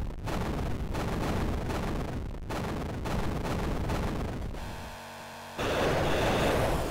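Video game music plays with chiptune sound effects.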